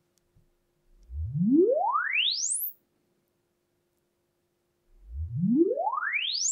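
A loudspeaker plays a test tone that sweeps quickly upward from low to high.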